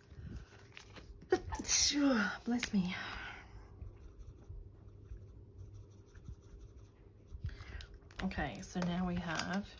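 Banknotes rustle and crinkle as they are handled.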